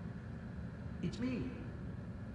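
A man speaks briefly and calmly, muffled behind glass.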